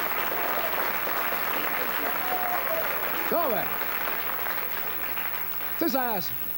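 An audience applauds in a large room.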